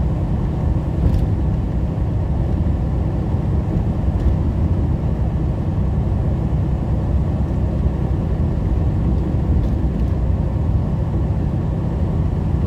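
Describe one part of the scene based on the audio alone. Tyres roar on a wet road.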